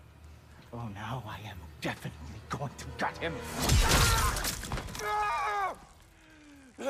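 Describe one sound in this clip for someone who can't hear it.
A man speaks menacingly in a low voice.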